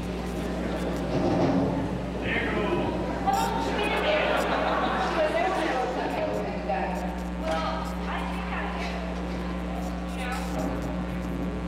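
A young woman speaks with animation through a microphone in a large echoing hall.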